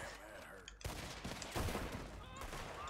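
Gunshots fire at close range.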